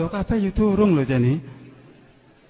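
A man chants in a drawn-out, melodic voice through a microphone in an echoing hall.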